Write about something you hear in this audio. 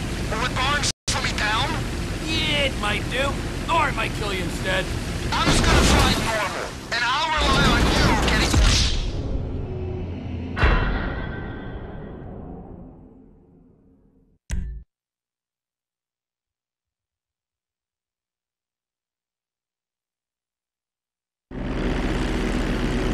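A propeller plane engine drones loudly.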